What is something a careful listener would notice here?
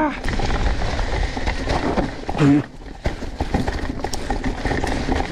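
A mountain bike rattles over rough ground.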